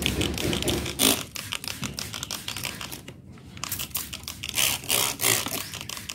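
A spray bottle hisses out short bursts of mist.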